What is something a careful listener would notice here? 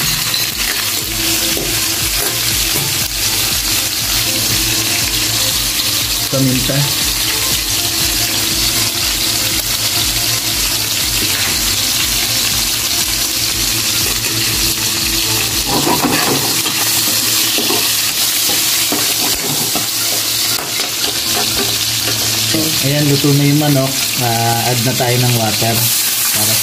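Meat sizzles and crackles in hot oil in a pan.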